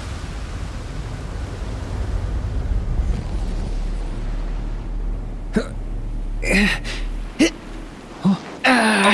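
A deep explosion rumbles and roars.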